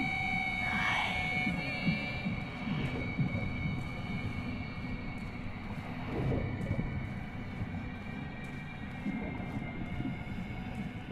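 Footsteps crunch on a rocky path.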